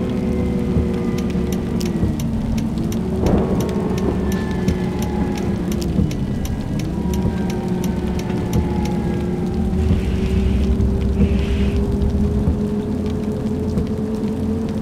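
A bus engine hums steadily, its pitch dipping and rising with the gears.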